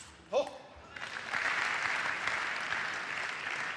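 A large indoor crowd cheers and applauds.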